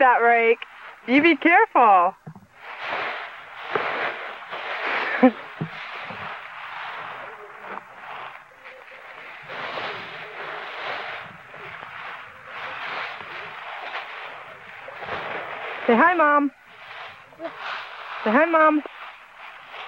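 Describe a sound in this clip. A small child squeals in a high voice.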